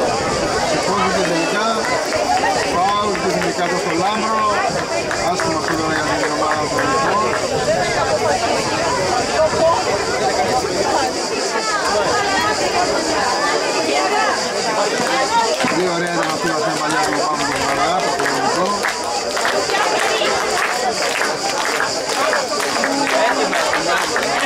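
Men shout and call out across an outdoor football pitch.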